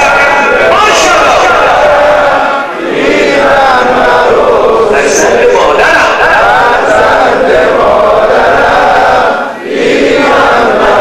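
A crowd of men and boys chants loudly together outdoors.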